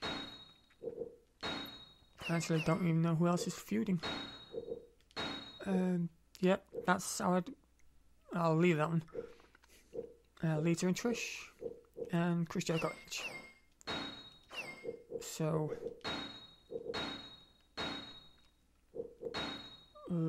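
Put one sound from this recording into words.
Short electronic menu beeps sound now and then.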